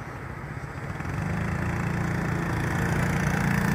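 A motorbike engine rumbles close by and grows louder.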